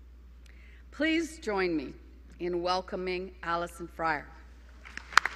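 An older woman speaks slowly through a microphone in a large hall.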